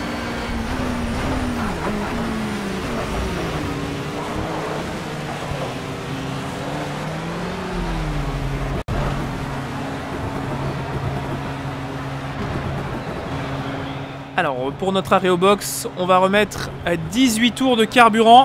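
A racing car engine drones, its pitch rising and falling as it shifts gears.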